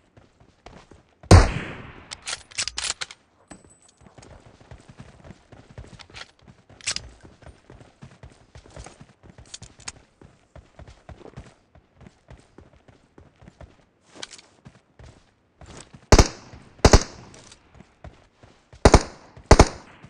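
Footsteps crunch on grass and ground.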